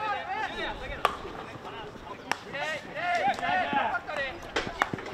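A hockey stick strikes a ball with a sharp crack.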